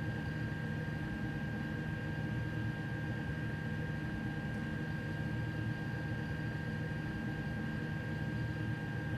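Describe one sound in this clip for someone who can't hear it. A train's engine hums steadily while standing still.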